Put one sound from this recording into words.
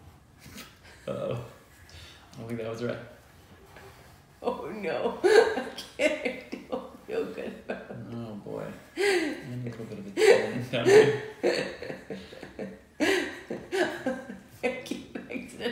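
A woman laughs loudly, close by.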